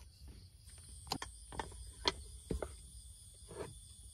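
A metal sandwich press clacks shut.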